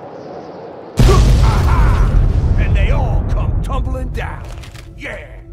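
A huge explosion booms and rumbles away.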